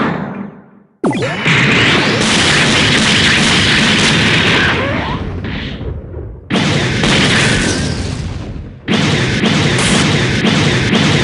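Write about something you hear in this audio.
Heavy blows crash and smash into the ground.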